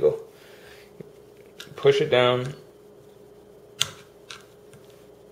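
Metal parts of a gun click and clack.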